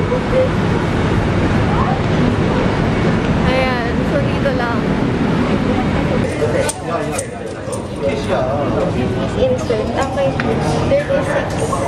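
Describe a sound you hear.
A steady bustle of people murmurs in a large echoing hall.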